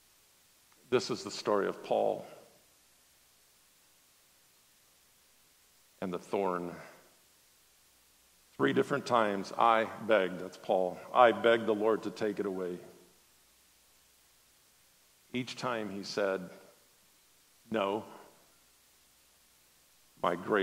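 A middle-aged man speaks calmly through a microphone, with pauses.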